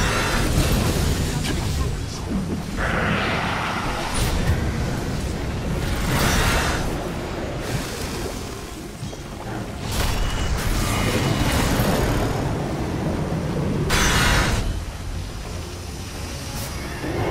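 Game spells hit with sharp bursts and impacts.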